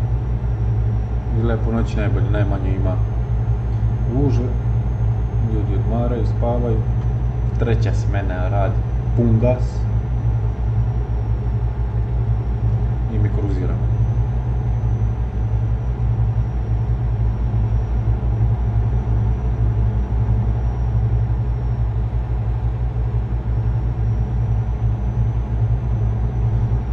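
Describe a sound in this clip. A truck engine hums steadily and low.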